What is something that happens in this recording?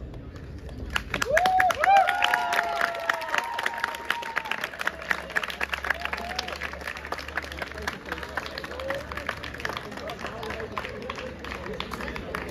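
A group of young people sings and chants together.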